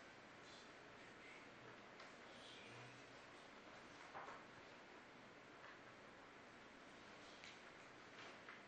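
Papers rustle faintly nearby.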